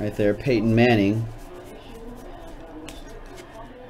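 Trading cards rustle and flick as a hand sorts through them.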